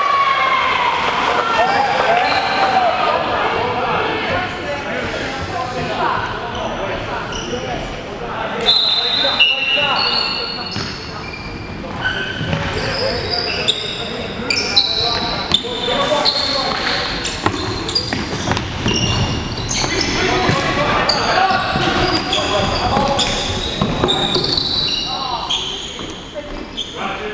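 Players call out and shout to each other across an echoing hall.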